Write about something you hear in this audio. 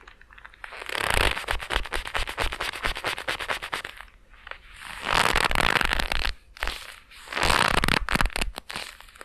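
A hair dryer blows loudly in short bursts.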